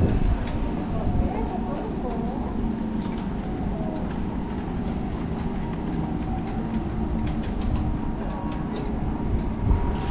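Bicycles roll past close by.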